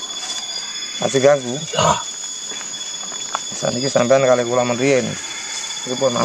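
A young man talks nearby.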